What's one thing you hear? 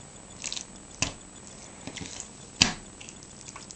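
Meat and bone thump onto a wooden board.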